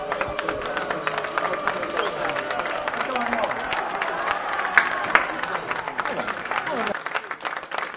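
A crowd of fans chants and cheers outdoors.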